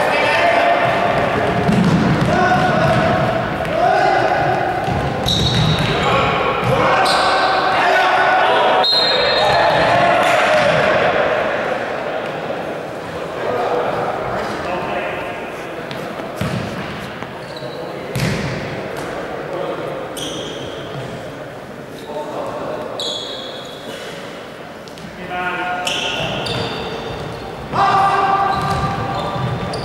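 Young men shout to one another in a large echoing hall.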